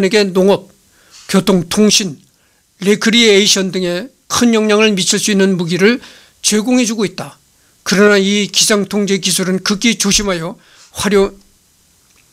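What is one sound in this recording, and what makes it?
A middle-aged man speaks calmly and steadily close to a microphone.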